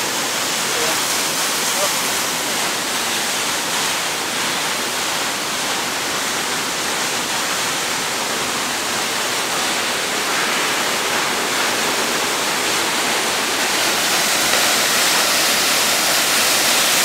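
A waterfall roars steadily, water crashing onto rocks.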